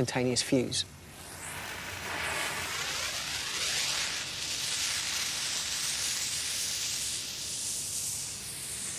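A burning fuse fizzes and hisses loudly.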